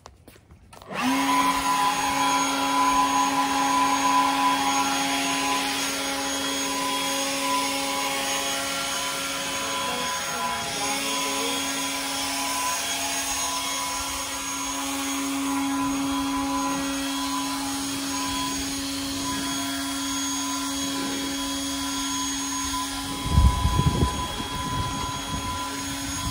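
A leaf blower whirs steadily with a droning hum.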